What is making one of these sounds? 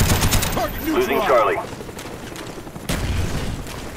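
Gunshots crack in a quick burst.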